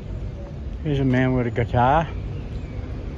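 A young man speaks briefly nearby.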